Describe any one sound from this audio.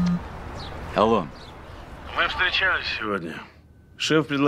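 A man speaks quietly into a phone.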